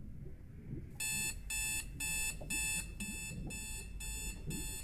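An alarm clock beeps in quick, repeated bursts.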